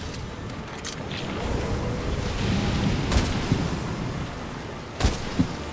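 A huge beast roars and stomps nearby.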